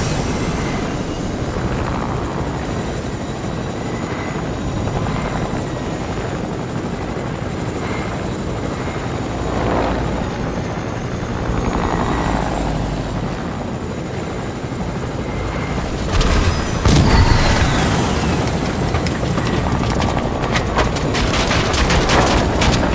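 A helicopter's rotor whirs steadily overhead.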